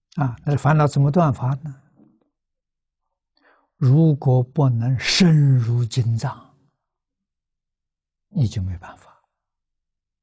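An elderly man speaks calmly and close to a microphone, pausing between phrases.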